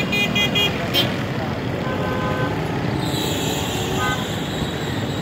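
Horns honk on the street.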